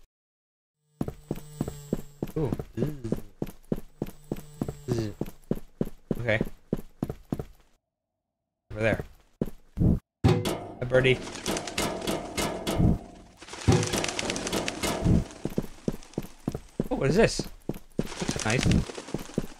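A man talks into a close microphone with animation.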